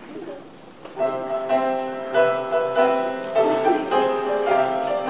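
A group of young children sing together loudly.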